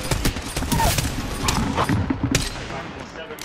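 Rapid gunshots fire in loud bursts.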